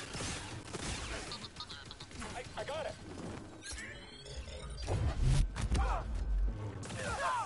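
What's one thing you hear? Energy blades clash with sharp crackling hits.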